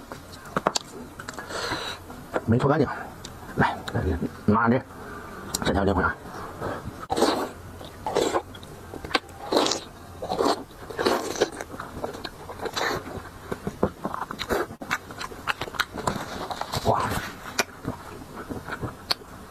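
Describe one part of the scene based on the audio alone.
A man chews and slurps food loudly up close.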